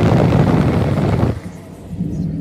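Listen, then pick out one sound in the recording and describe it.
A car hums along a road.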